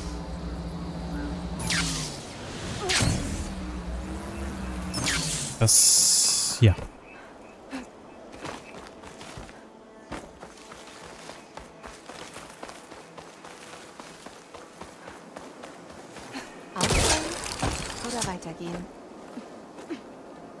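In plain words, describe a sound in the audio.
Leaves and undergrowth rustle as someone pushes through dense plants.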